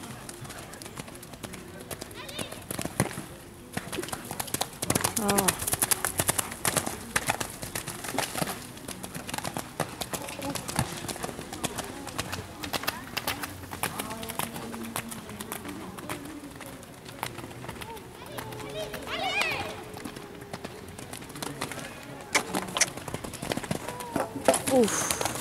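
Horse hooves thud on wet sand.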